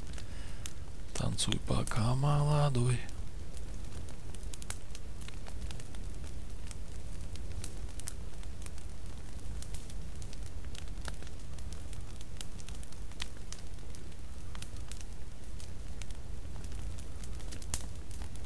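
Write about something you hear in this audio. A campfire crackles and pops close by.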